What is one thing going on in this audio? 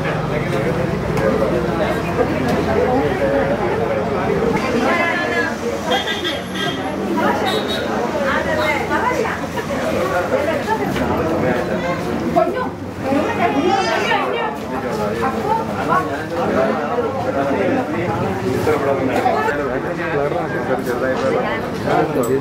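A crowd of people chatter nearby in a busy indoor space.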